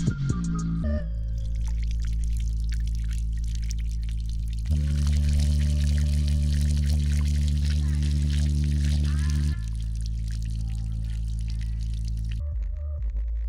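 Water splashes and sprays above a speaker.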